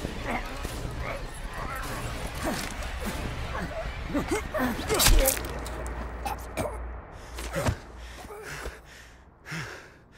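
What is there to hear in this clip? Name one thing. A man groans and gasps in pain.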